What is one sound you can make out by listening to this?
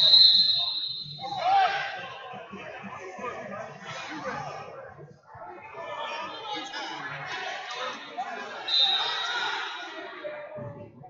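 A crowd chatters and cheers in a large echoing hall.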